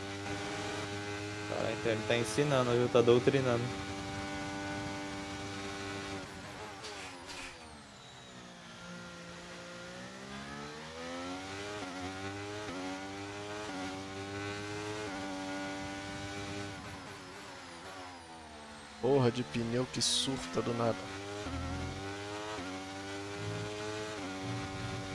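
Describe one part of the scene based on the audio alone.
A racing car engine whines steadily, rising and falling in pitch as it shifts gears.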